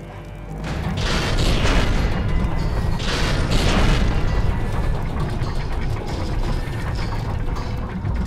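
A fire crackles in an iron brazier.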